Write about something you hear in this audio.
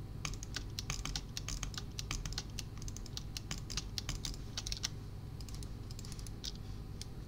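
Game blocks are placed in quick succession with short soft thuds.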